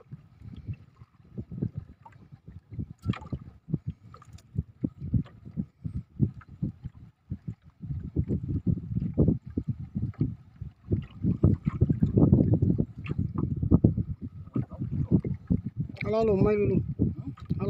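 A fishing reel whirs as a man winds in the line.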